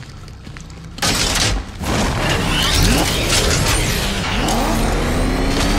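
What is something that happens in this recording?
A powerful car engine roars and revs.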